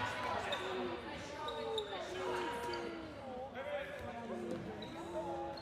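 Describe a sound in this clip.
Young men shout to each other in an echoing gym.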